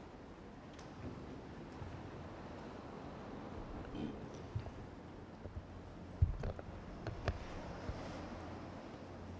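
Footsteps and soft knocks echo in a large hall.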